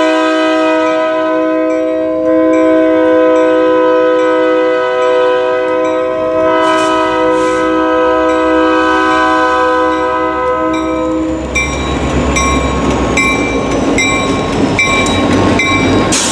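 A diesel locomotive engine rumbles as it approaches.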